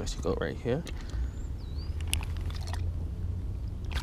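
A fish splashes briefly in shallow water.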